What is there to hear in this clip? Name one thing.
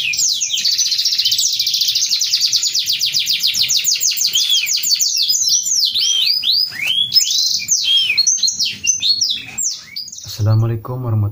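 Caged songbirds sing rapid, high trilling songs.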